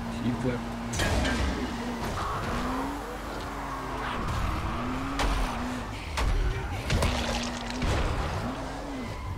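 Metal clanks and crashes as a vehicle hits obstacles.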